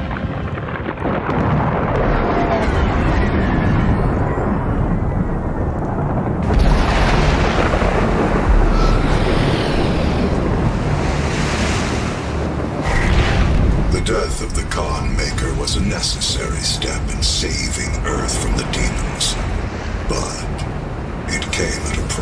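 Heavy rain pours down outdoors in a storm.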